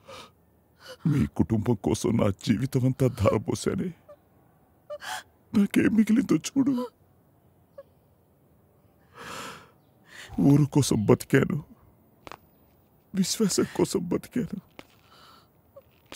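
A woman speaks in a tearful, upset voice, close by.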